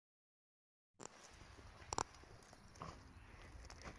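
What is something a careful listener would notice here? A dog rolls and rubs on dry grass with a rustling sound.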